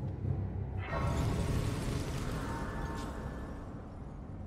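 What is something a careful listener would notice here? A shimmering magical chime swells and fades.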